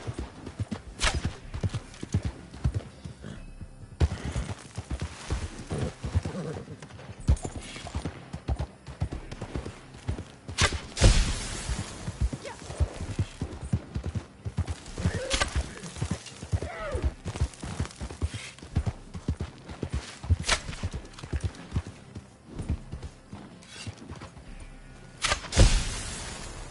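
Gunshots crack out now and then, with a sharp echo.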